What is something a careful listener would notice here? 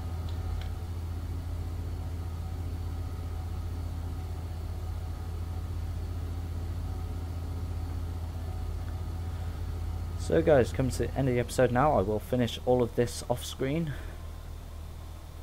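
A wheel loader's diesel engine rumbles steadily.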